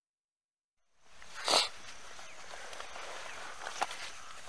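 Nylon fabric rustles and crinkles close by as someone shifts around.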